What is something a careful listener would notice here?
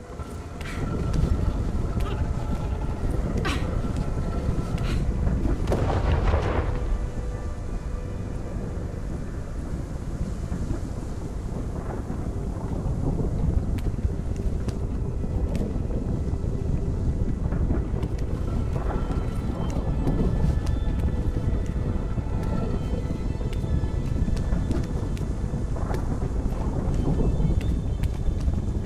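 A deep, churning rumble swells and roars.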